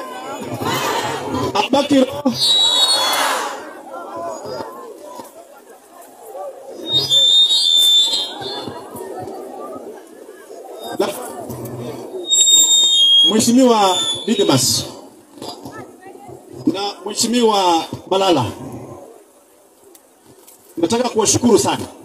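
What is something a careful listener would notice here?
A large outdoor crowd cheers and chatters loudly.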